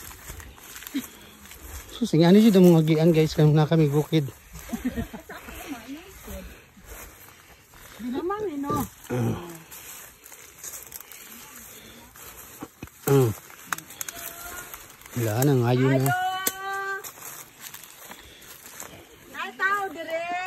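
Footsteps rustle through grass and dry leaves.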